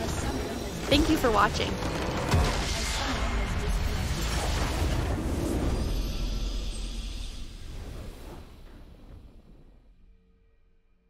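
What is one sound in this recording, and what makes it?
A video game's base structure blows apart in a magical explosion.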